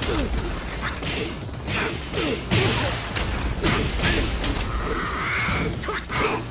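Punches and kicks land with heavy, rapid thuds.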